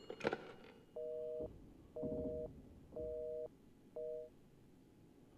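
A telephone line beeps in short, repeating tones.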